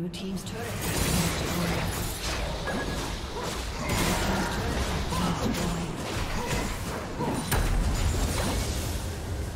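Game characters' attacks hit with sharp impacts.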